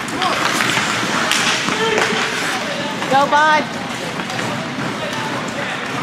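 Spectators nearby shout and cheer in a large echoing rink.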